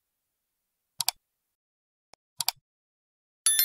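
A computer mouse clicks twice in quick succession.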